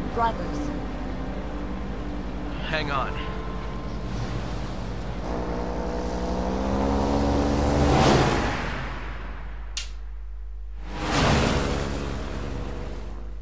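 An airboat engine drones and roars as the boat speeds past.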